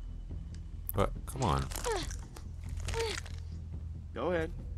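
A hammer squelches as it is pulled from a skull.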